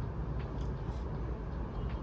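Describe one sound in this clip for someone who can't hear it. A young woman chews food close by.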